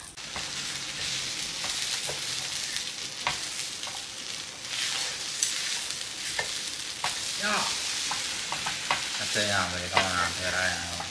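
A pancake sizzles in a pan.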